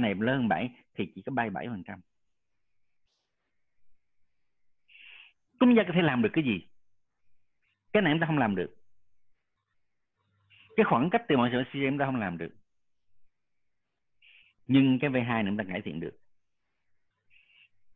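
A man lectures calmly over an online call, speaking in short bursts with pauses.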